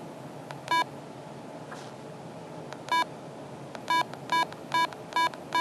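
Fingers click on small rubber buttons.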